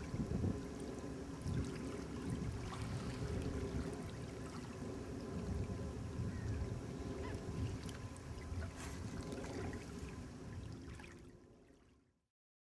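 Wind blows outdoors, rumbling.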